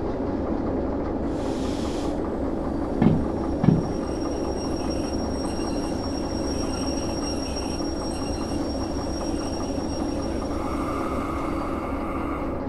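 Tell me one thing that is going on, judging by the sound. Train wheels clatter over rails.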